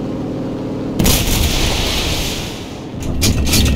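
Machine guns fire in a long, loud rattling burst.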